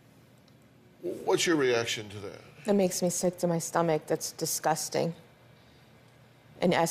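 A woman speaks with emotion, close to a microphone.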